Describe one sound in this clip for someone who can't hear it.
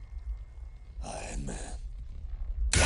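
A man speaks in a low, weary voice.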